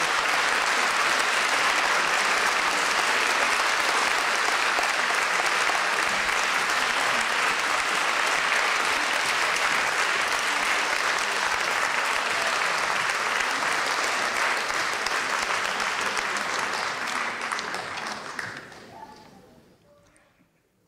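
An audience applauds steadily in a large hall, then the applause fades away.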